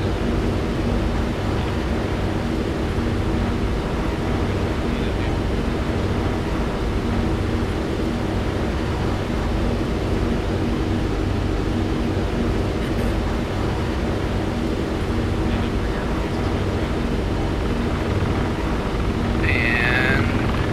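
A helicopter's engine and rotor drone loudly and steadily from inside the cabin.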